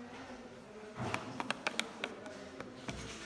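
Keypad buttons beep as they are pressed.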